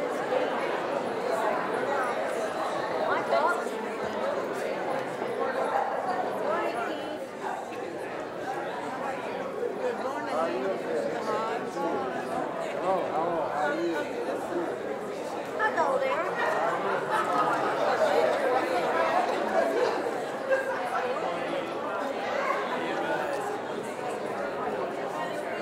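A crowd of men and women chat all at once in a large echoing hall.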